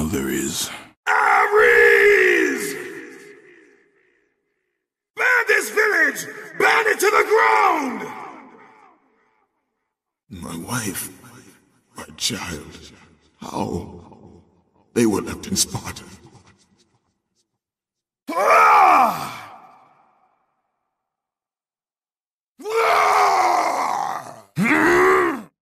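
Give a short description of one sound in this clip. A man shouts and grunts in short, deep, rough bursts with a lingering echo.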